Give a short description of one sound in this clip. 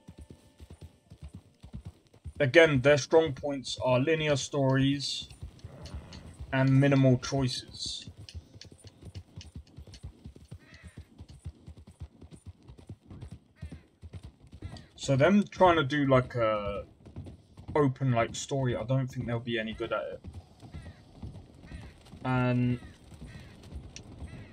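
A horse's hooves thud steadily on a dirt track and then on wooden boards.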